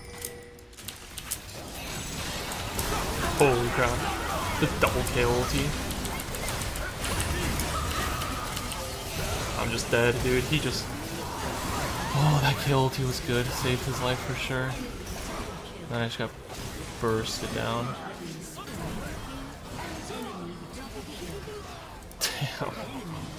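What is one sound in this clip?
Game effects crash and whoosh during a fight.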